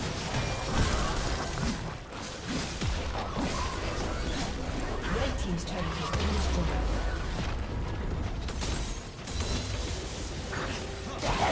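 Impacts thump repeatedly as characters fight.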